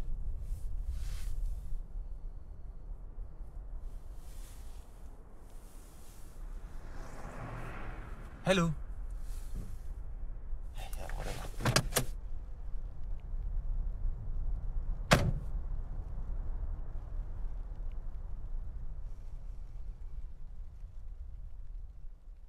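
Road noise rumbles low inside a moving car.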